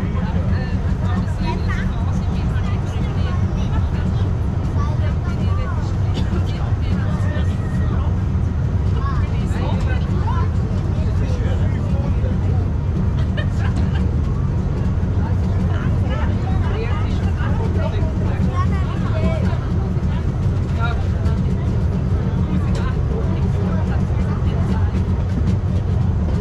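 A crowd of passengers chatters nearby.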